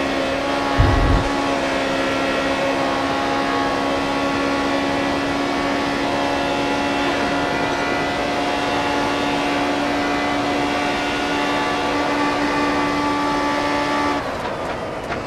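A racing car engine whines loudly and steadily at high revs.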